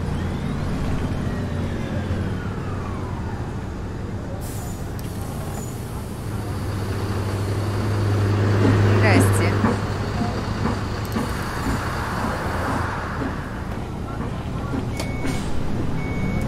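Bus doors hiss open and shut.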